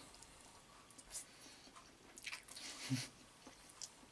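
A middle-aged man slurps and chews pasta with his mouth full.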